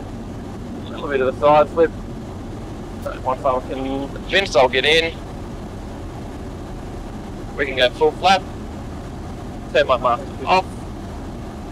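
A man speaks calmly in short phrases over a headset intercom.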